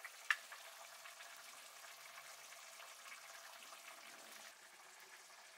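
Hands break apart dry fried fish with small crackling snaps.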